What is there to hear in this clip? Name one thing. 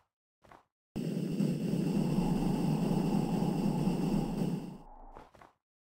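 A jetpack hisses and roars steadily.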